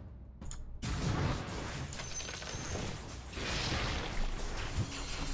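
Game fight effects clash and crackle.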